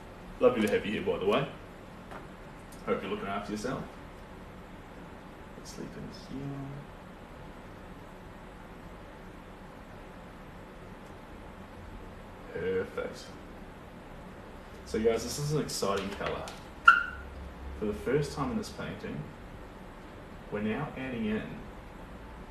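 A young man speaks calmly and close by, in short bursts.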